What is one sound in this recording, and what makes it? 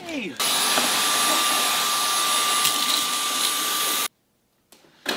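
A handheld vacuum cleaner whirs loudly with a high whine.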